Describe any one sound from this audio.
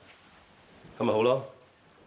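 A second man replies in a calm, low voice.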